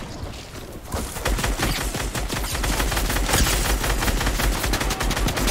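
Rapid gunfire rattles in a game.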